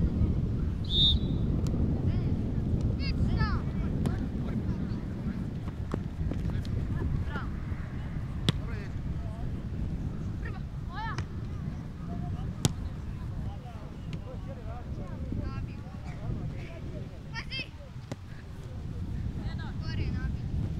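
Players shout to each other across an open field in the distance.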